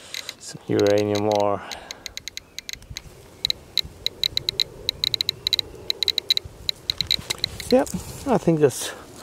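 A radiation detector clicks rapidly and unevenly.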